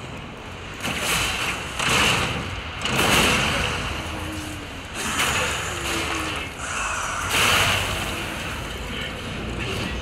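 Heavy metal blades clash and clang in hard impacts.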